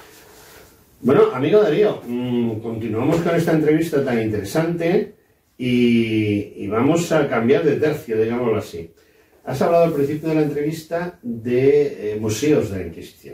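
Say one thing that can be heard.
An elderly man speaks calmly and steadily nearby.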